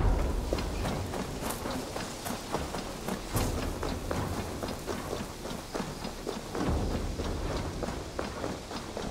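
Footsteps rustle through dry grass and then thud on a dirt path at a quick pace.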